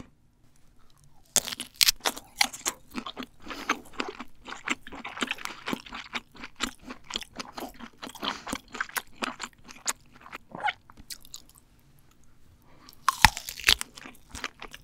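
A young woman bites into a firm sausage with a crisp snap.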